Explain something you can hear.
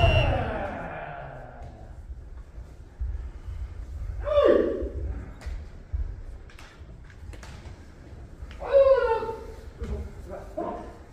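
Kendo fencers let out sharp battle shouts in a large echoing hall.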